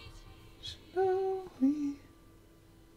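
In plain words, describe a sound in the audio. A woman sings two short held notes close to a microphone.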